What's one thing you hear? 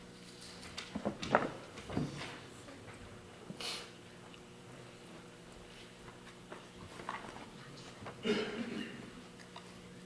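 A man speaks briefly at a distance.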